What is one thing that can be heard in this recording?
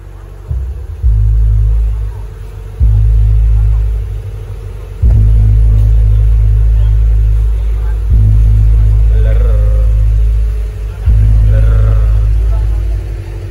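Deep booming bass blasts in long bursts from large loudspeakers.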